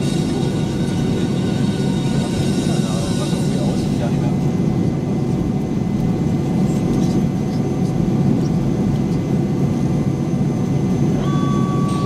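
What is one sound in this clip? Airliner wheels rumble over the taxiway.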